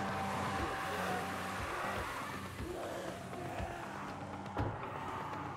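Heavy footsteps thud down stairs at an even pace.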